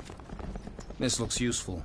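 A gun fires a short burst.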